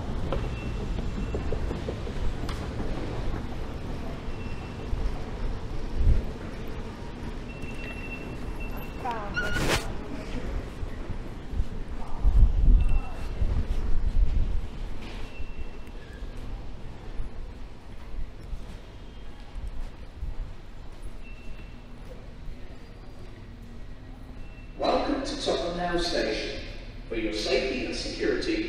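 Footsteps tread on a hard floor in a large echoing hall.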